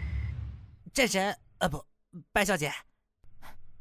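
A young woman speaks in a soft, playful voice.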